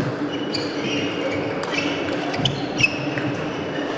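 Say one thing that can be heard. A table tennis ball clicks quickly back and forth on paddles and the table.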